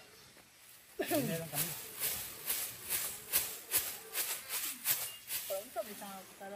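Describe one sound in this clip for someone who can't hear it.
A plastic bag rustles and snaps as it is shaken.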